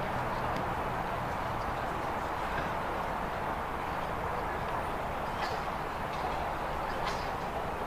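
A horse's hooves thud on grass as it canters.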